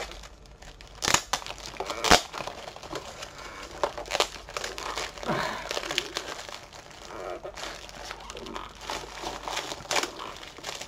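A plastic package crinkles and clicks in a man's hands.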